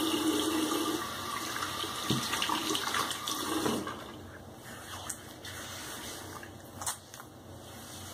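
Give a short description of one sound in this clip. A razor scrapes over a shaved head.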